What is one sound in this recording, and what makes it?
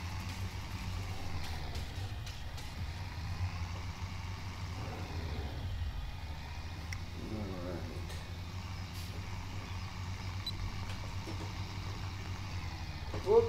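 A tractor engine rumbles steadily at low speed.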